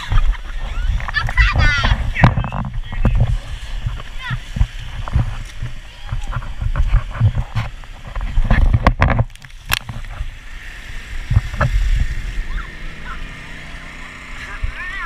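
Water splashes and rushes as inflatable tubes slide down a wet slide.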